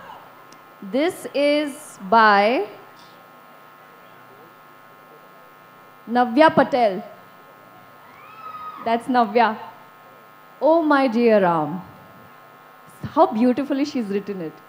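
A young woman speaks animatedly into a microphone, heard through loudspeakers, in bursts with pauses.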